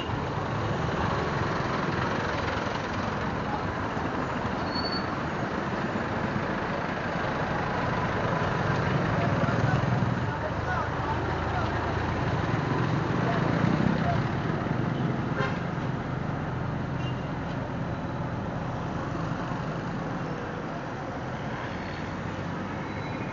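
Traffic drones all around on a busy street.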